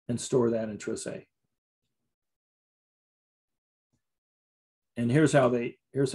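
A man speaks calmly into a close microphone, pausing between phrases.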